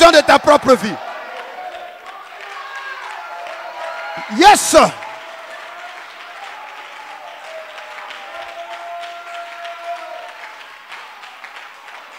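A crowd of people pray aloud with murmuring voices.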